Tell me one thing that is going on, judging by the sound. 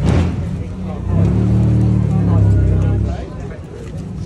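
An engine rumbles loudly nearby.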